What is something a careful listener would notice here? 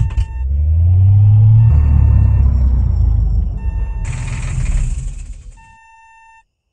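A truck's diesel engine rumbles and then shuts off.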